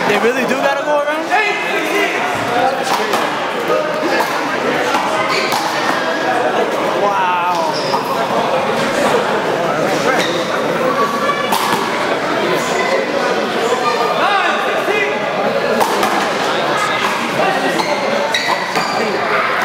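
A rubber ball smacks against a wall and echoes in a large hall.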